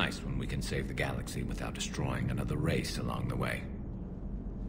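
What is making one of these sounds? A man speaks calmly in a deep, gravelly voice.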